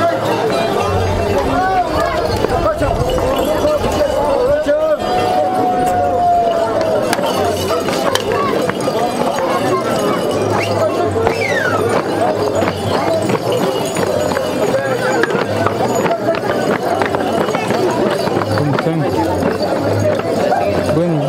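A crowd of men and women sing and chatter loudly close by, outdoors.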